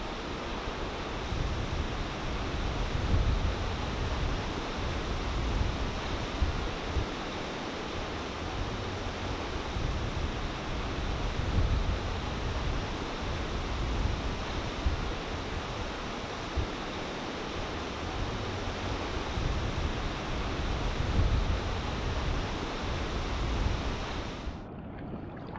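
Ocean waves break and roar as white water churns.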